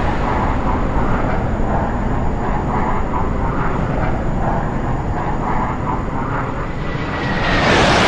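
Jet engines roar steadily overhead.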